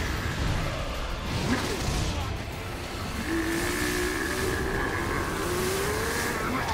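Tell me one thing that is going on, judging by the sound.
An icy energy blast roars and crackles.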